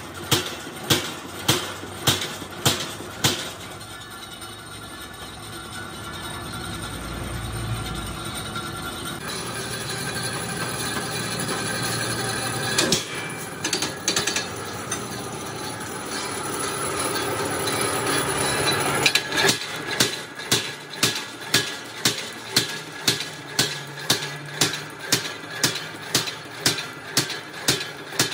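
A punch press thumps rapidly and rhythmically, stamping holes in sheet metal.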